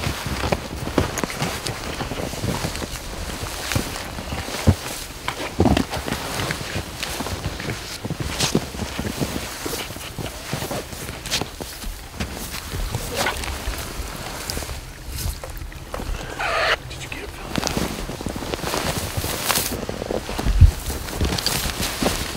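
Boots crunch and squeak through deep snow.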